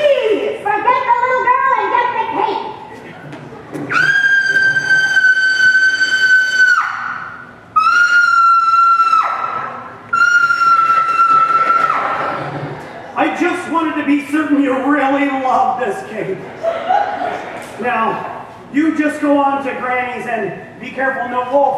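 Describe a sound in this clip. A man speaks with animation from a stage in a large hall.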